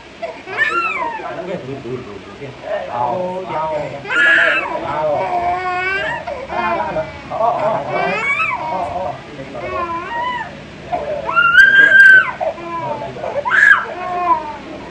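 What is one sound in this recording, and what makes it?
A toddler wails and cries.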